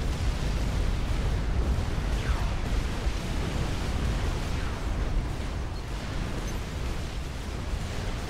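Laser weapons zap and fire.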